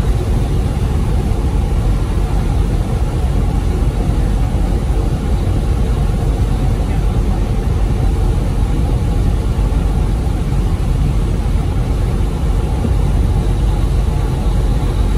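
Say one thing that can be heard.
A large vehicle's engine rumbles steadily from inside the cab.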